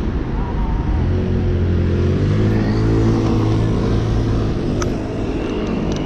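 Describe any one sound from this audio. A bus engine hums nearby.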